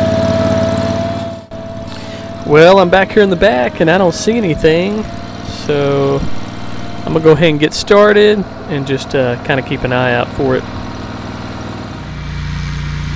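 A riding mower engine drones loudly up close.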